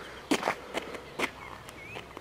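A ball thuds as it is kicked on hard ground.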